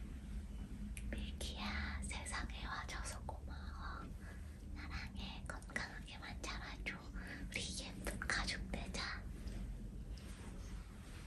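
A young woman speaks cheerfully and warmly close by.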